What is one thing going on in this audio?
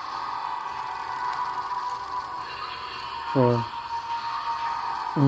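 Electronic game sounds play steadily through a small speaker.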